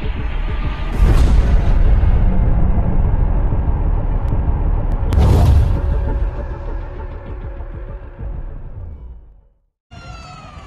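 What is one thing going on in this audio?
A stone ball bursts apart with a loud, booming crash.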